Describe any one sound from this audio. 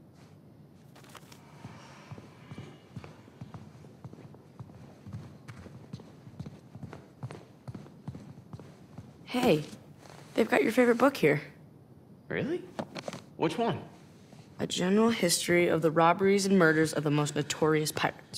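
Footsteps tap across a hard tiled floor.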